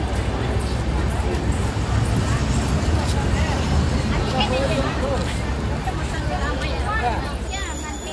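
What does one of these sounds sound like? A crowd of men and women chatters nearby.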